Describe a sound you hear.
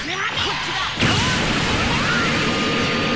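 A huge energy beam roars out with a burst.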